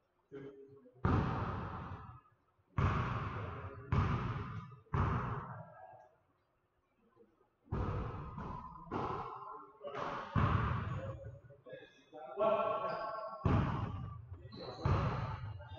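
A basketball bounces loudly on a wooden court.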